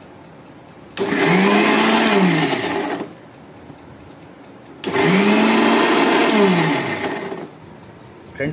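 An electric mixer grinder whirs loudly in short bursts.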